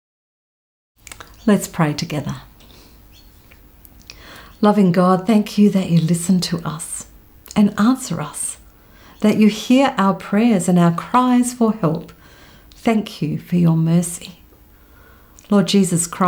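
A middle-aged woman speaks calmly and closely into a microphone.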